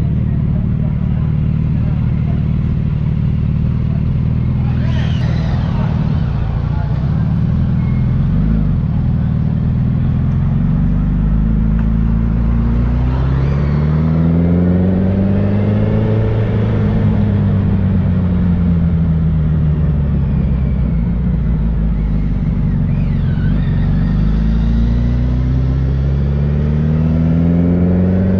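A motorcycle engine idles and then revs as the bike rides off.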